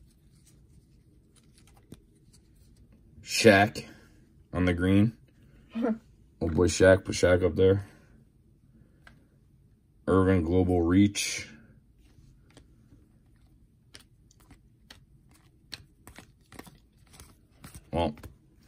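Trading cards rustle and click as they are flipped through by hand.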